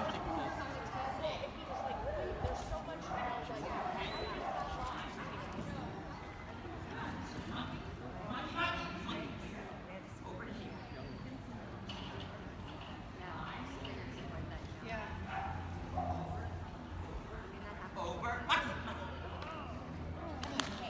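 A woman calls out short commands to a dog in a large echoing hall.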